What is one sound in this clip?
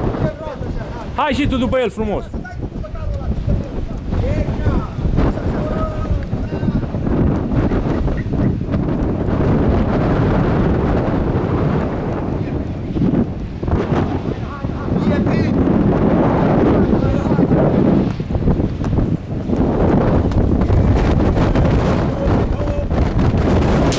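Wind blows across open ground.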